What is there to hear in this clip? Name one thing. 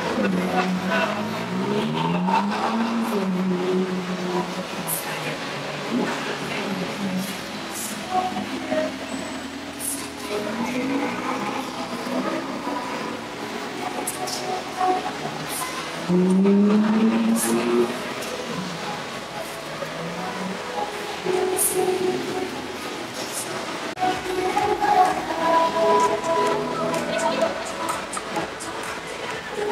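A crowd murmurs and chatters nearby, outdoors.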